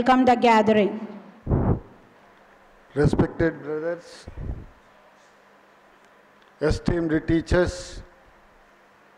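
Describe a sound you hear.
A man speaks slowly into a microphone over loudspeakers, with pauses between phrases.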